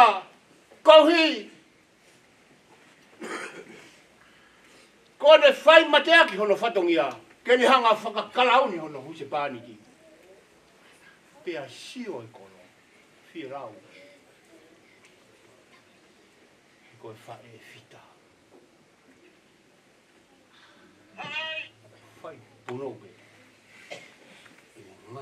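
A middle-aged man preaches with passion into a microphone, his voice rising and falling with long pauses.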